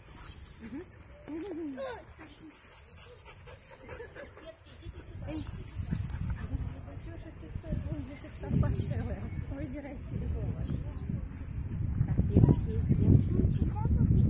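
Young children chatter and call out nearby outdoors.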